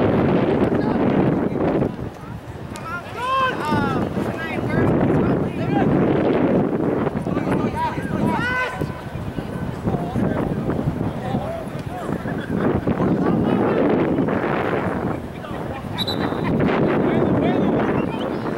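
Wind blows across an open outdoor field.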